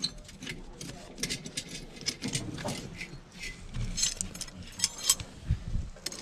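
A metal tool taps and scrapes against bricks.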